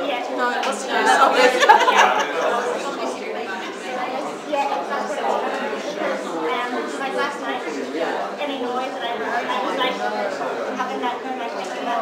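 A crowd of adults chatters at once.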